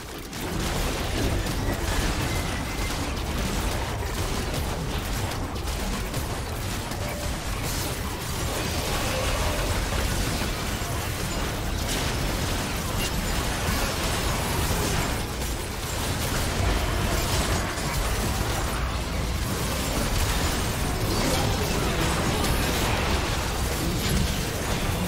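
Fantasy battle sound effects clash, zap and crackle.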